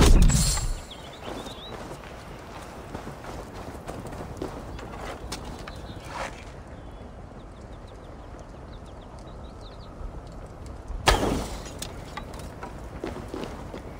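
Footsteps crunch over stony ground.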